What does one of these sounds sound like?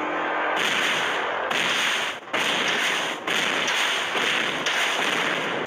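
Game characters clash with magical blasts and hits.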